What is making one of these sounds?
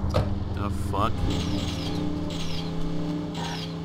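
A car engine hums and revs as the car drives off.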